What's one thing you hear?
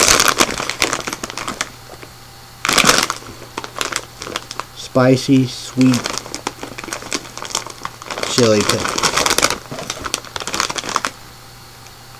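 Plastic packaging crinkles and rustles close by.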